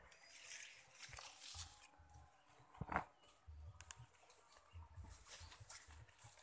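Leaves rustle in a breeze outdoors.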